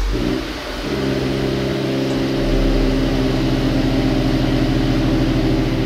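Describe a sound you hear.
A car engine idles with a steady deep rumble.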